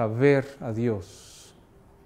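A middle-aged man speaks clearly into a microphone.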